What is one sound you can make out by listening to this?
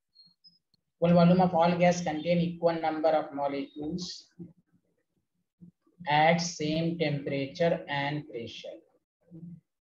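A man explains calmly through a microphone, as in a lecture.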